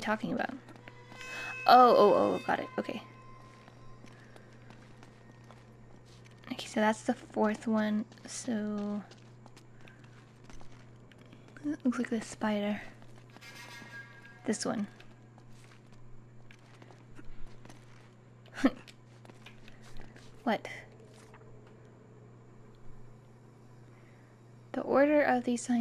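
A young woman talks calmly into a nearby microphone, in short bursts with pauses.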